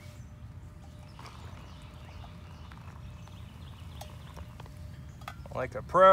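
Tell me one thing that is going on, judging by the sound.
Water pours from a metal cup into a plastic pouch.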